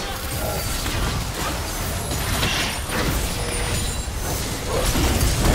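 Magic spells blast and crackle in a busy fantasy battle.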